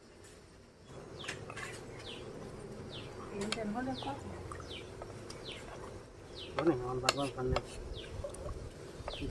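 A wooden spatula scrapes and stirs thick food in a metal pot.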